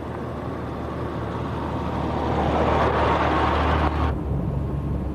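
A truck engine rumbles, growing louder as it approaches and passes close by.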